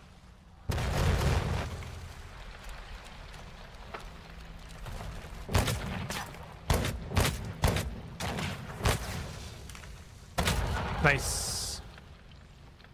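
Explosions boom in short bursts.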